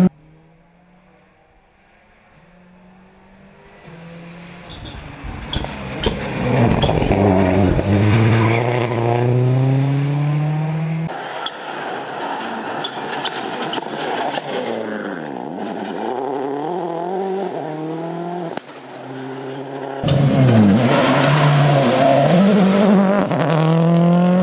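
A rally car engine roars and revs hard as the car speeds past.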